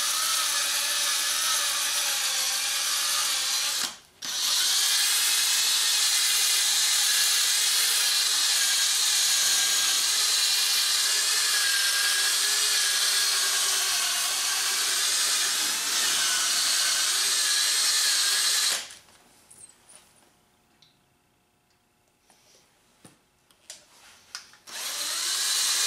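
A power polisher whirs steadily.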